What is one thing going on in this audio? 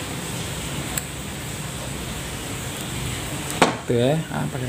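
Wire cutters snip with a sharp click.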